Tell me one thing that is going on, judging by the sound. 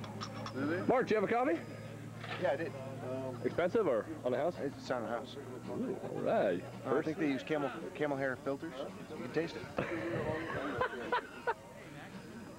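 A man talks close by, casually.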